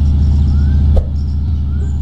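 A phone menu opens with a short click.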